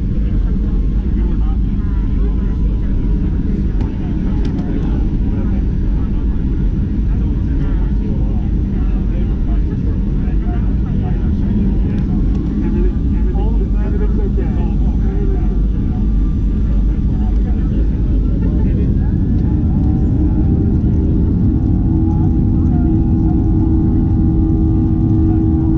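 A jet engine roars steadily close by, heard from inside an aircraft cabin.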